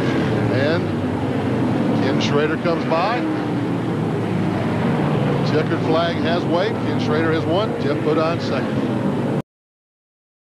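Racing truck engines roar steadily around a track.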